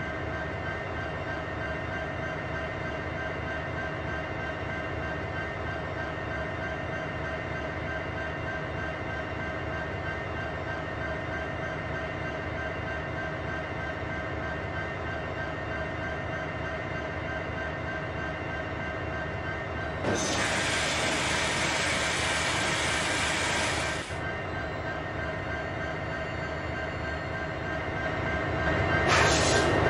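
A diesel locomotive drones steadily.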